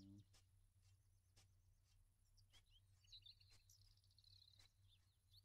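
Footsteps rustle through grass at a steady walking pace.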